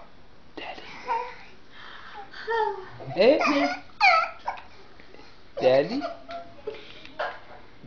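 A baby babbles and squeals loudly up close.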